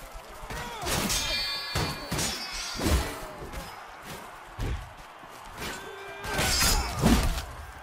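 Steel swords clang and slash in a fight.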